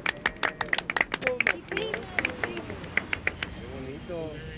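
People clap their hands in quick rhythm.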